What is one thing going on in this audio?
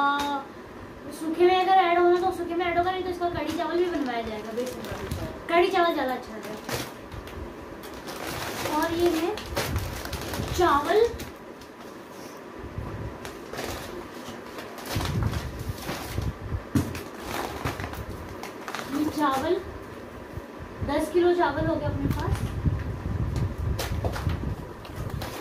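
Plastic packets and paper bags rustle and crinkle.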